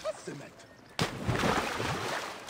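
Water splashes as a body drops into it.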